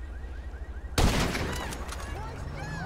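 A rifle shot cracks loudly and echoes.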